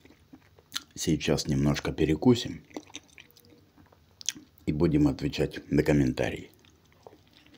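A man speaks with animation close to the microphone.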